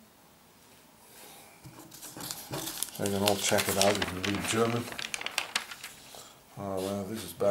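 Newspaper pages rustle and crackle as they are handled and turned.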